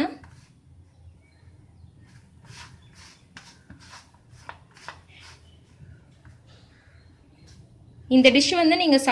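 Fingers crumble and rub a dry, crumbly dough with a soft rustle.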